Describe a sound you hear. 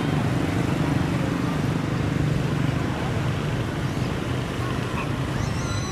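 A motorbike engine hums as it passes close by.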